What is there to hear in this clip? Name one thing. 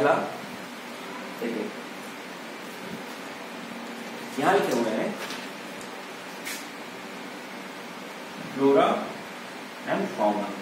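A young man speaks calmly nearby in short phrases.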